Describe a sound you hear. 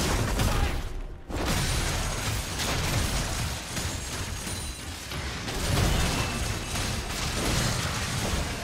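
Spell effects crackle and burst in a game fight.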